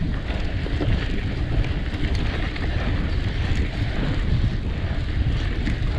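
Bicycle tyres roll and crunch over a sandy dirt trail.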